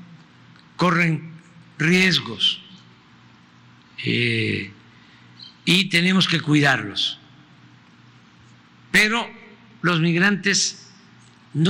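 An elderly man speaks slowly and calmly into a microphone, in short phrases with pauses.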